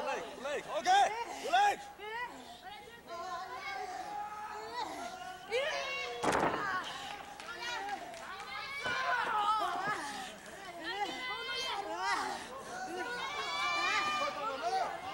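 A crowd of young women cheers and screams in a large hall.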